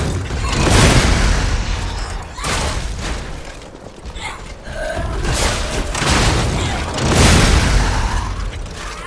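Heavy weapon blows land with loud crashing thuds.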